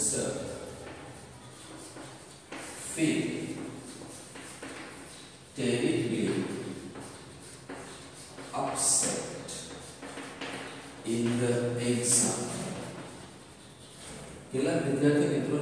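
A man speaks slowly and clearly nearby.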